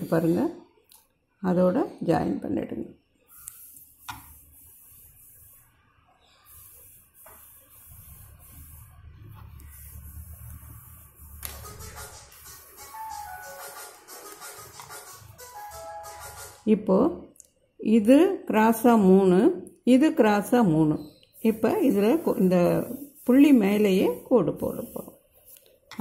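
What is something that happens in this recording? A felt-tip pen scratches softly across paper.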